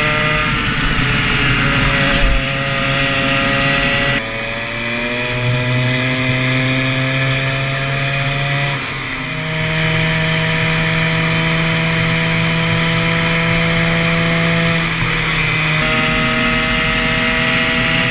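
A kart engine buzzes loudly up close, its pitch rising and falling as it speeds up and slows for corners.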